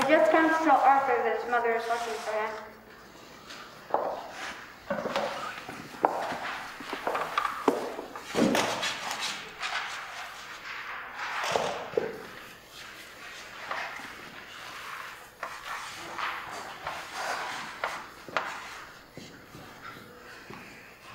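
A young girl speaks in a clear, raised voice in an echoing hall.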